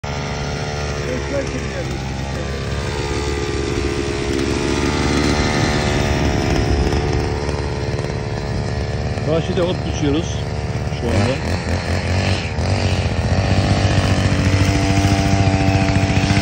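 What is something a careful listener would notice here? A petrol string trimmer engine drones steadily close by.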